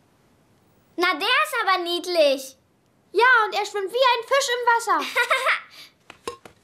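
A young child's voice speaks with animation, close by.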